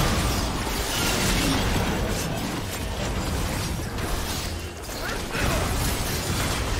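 Game spell effects burst and crackle in a fast fight.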